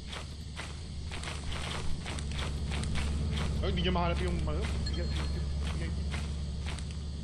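Footsteps crunch steadily through grass and leaves.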